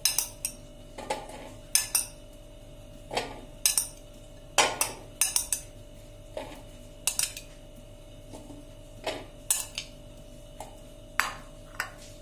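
Grapes drop with soft thuds into a plastic baking mould.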